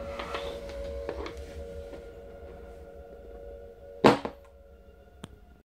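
A body slides and thumps on a wooden floor.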